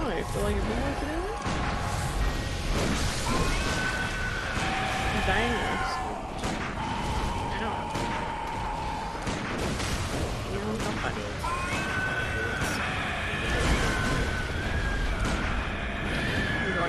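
Blades slash and clang in a fight.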